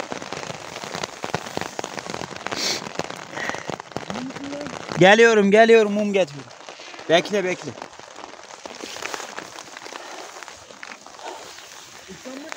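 Nylon fabric rustles and crinkles close by.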